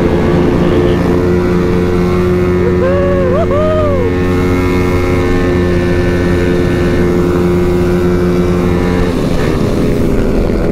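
A motorcycle engine roars steadily at high speed.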